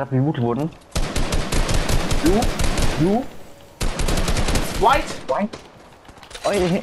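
Rapid gunshots crack in quick bursts.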